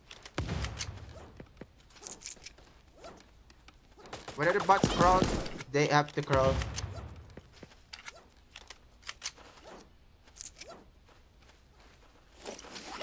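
Small gunshots pop in quick bursts.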